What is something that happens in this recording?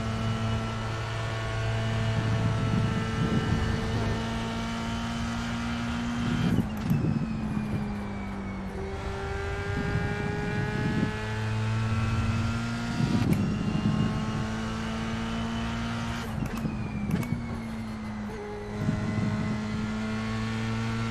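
A racing car engine revs high and drops in pitch with each gear change.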